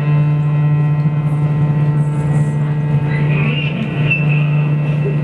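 A cello plays a low, sustained bowed note.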